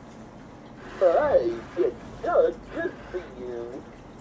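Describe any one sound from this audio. A plush toy speaks and sings in a cheerful, playful electronic voice through a small speaker.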